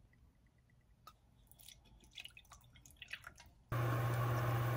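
Thick sauce pours and drips into a bowl.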